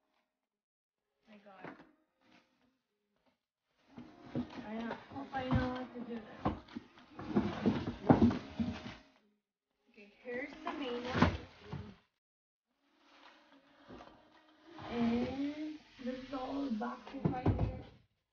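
Cardboard scrapes and thumps.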